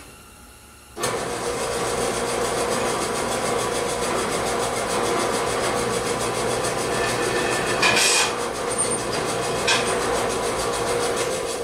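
A power tool whirs loudly and steadily, starting suddenly.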